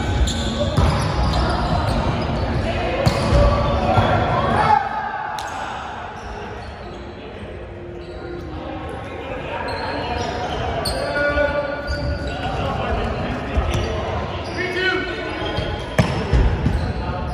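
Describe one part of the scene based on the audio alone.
A volleyball is struck by hands.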